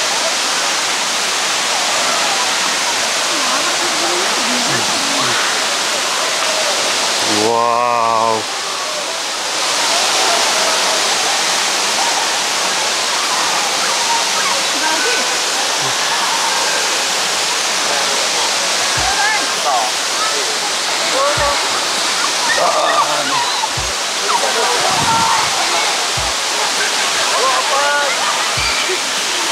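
A waterfall roars steadily nearby.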